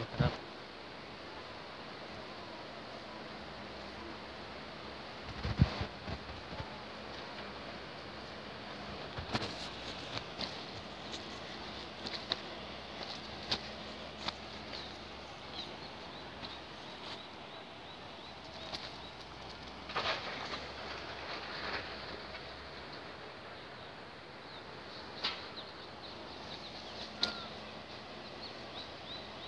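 Wind blows steadily outdoors, rustling leaves and crops.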